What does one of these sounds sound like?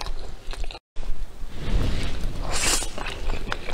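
A young woman slurps noodles close to a microphone.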